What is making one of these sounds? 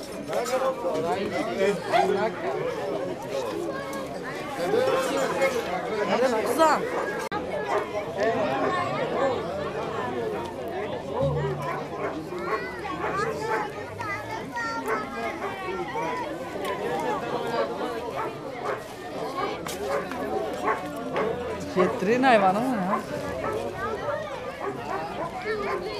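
A crowd of men and women chatter and talk outdoors.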